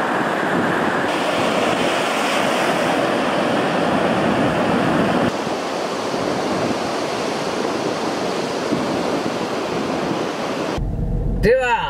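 Foamy surf washes and hisses over sand.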